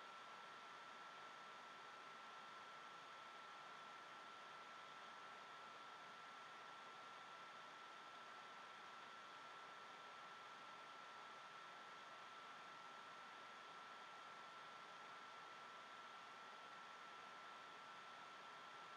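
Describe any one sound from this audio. Tap water runs steadily into a sink.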